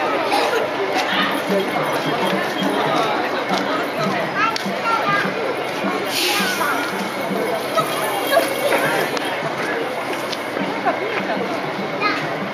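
A crowd of people chatter in a busy street outdoors.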